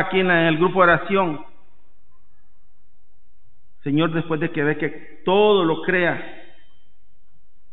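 A man chants slowly through a microphone in a large echoing room.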